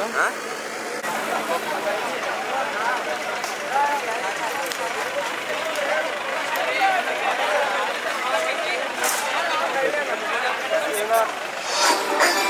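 A crowd cheers and shouts at a rally.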